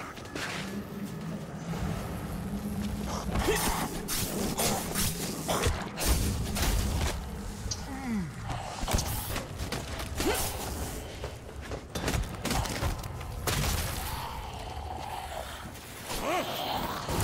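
Electric crackles and zaps burst in quick bursts.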